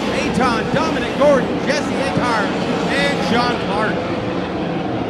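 Racing car engines roar and rev loudly.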